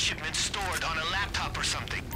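Flames crackle nearby.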